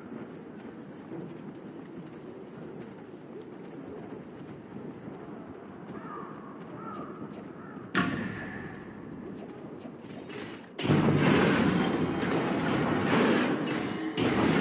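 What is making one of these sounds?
Footsteps run over grass.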